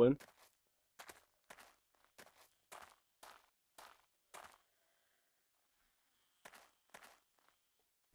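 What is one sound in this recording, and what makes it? Footsteps crunch steadily over rubble.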